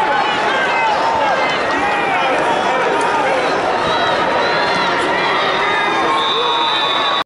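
A large crowd cheers and chatters loudly in a big echoing hall.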